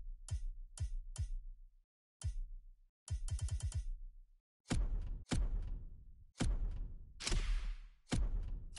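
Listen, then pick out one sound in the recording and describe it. Game menu clicks and whooshes sound as selections change.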